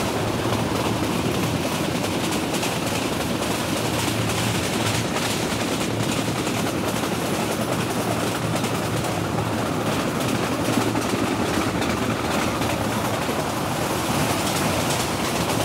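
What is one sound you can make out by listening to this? A passenger train pulled by a diesel locomotive rumbles along the track at speed.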